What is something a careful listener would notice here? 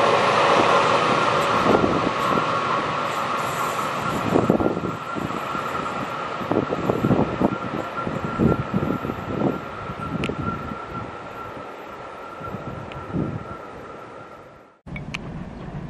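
A train rumbles past close by with clattering wheels, then fades away.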